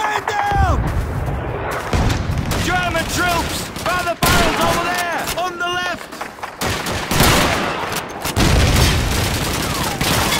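Gunfire and explosions boom loudly nearby.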